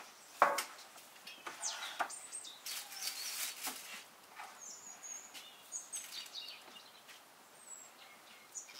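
Plastic sheeting rustles and crinkles under hands.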